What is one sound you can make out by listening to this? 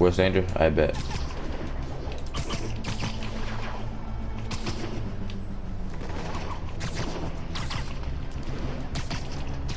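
Wind rushes and whooshes during fast swinging through the air.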